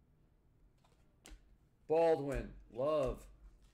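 A plastic card wrapper crinkles in hands.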